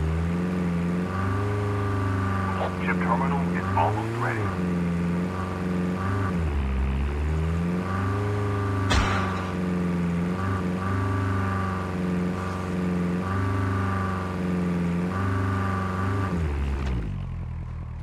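A vehicle engine roars steadily, rising and falling in pitch, then fades away.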